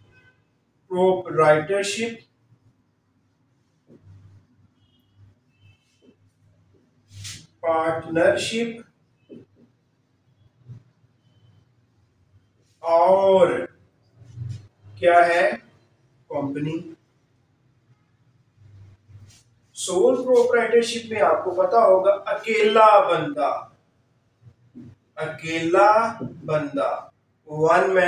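A man lectures calmly in bursts, close by.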